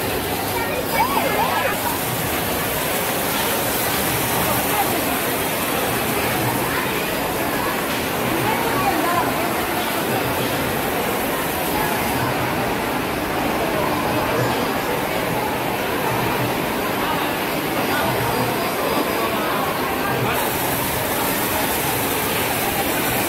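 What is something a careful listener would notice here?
Arcade game machines play loud electronic sounds and music.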